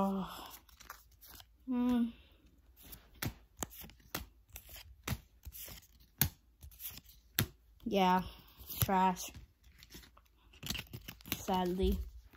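Trading cards flick and rustle in a boy's hands.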